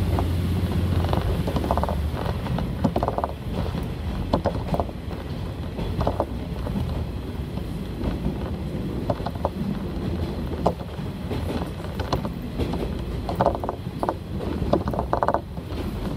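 A diesel railcar rumbles along at speed, heard from inside the carriage.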